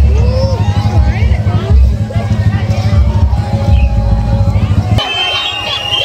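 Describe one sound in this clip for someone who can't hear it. Loud music with a heavy thumping beat plays through loudspeakers.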